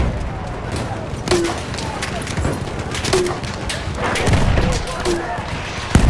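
A pistol fires sharp shots close by.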